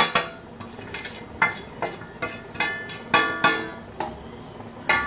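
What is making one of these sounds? A metal ladle clinks against an iron kadai.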